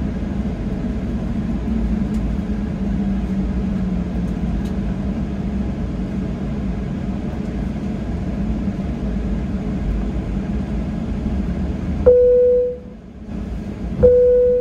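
An aircraft engine hums low and steady.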